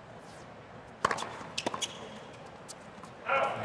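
A tennis ball is struck with sharp pops back and forth.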